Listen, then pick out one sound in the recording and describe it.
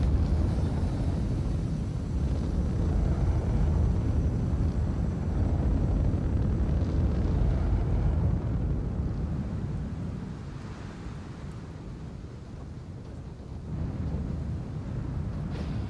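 A spacecraft's engines rumble and hum steadily as it hovers low.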